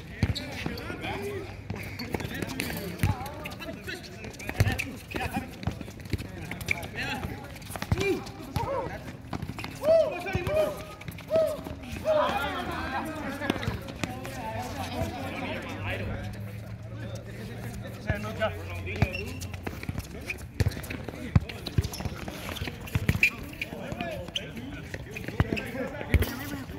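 A ball thumps off players' feet on a hard court.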